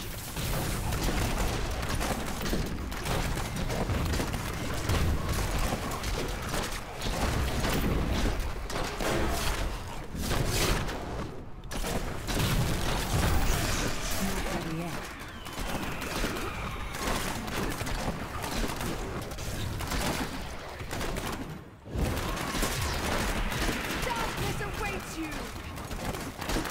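Fiery spell blasts crackle and boom in quick succession.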